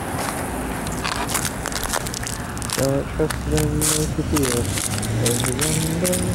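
Footsteps crunch on wet, slushy pavement.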